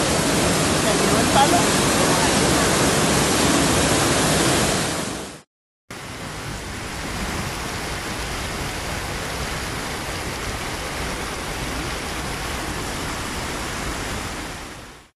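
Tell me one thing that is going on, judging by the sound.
Heavy rain pours down outdoors.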